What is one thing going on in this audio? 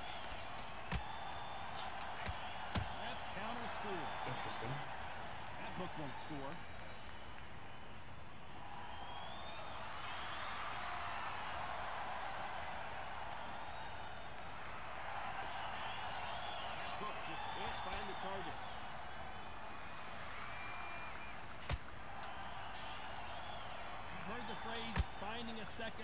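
Gloved punches thud against a body.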